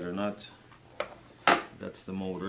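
A plastic turntable base knocks as it is set down on a surface.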